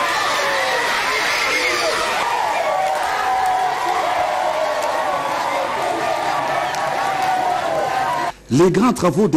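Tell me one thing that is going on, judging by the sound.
A large crowd cheers and sings loudly outdoors.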